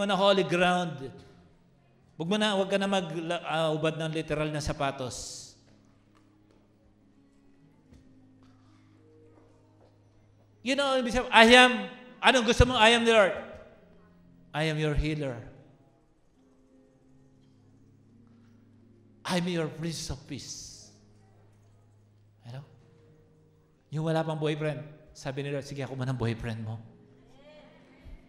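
A man speaks with animation into a microphone over loudspeakers in a large echoing hall.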